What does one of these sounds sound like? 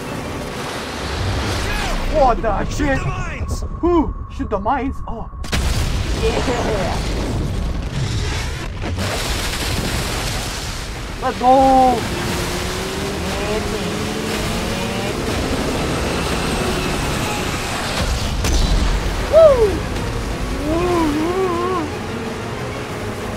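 A boat engine roars as it speeds over choppy water.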